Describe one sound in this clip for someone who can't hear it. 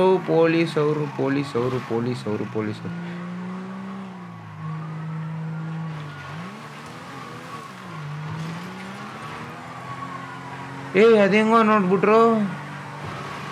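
A police siren whoops in short bursts.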